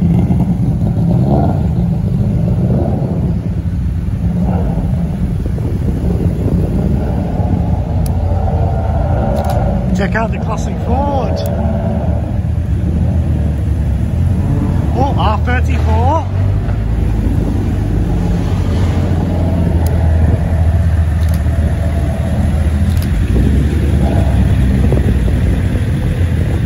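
Tyres hiss on a wet road.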